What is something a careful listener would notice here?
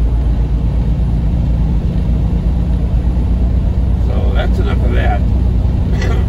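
A car's engine and tyres rumble steadily on a paved road from inside the cabin.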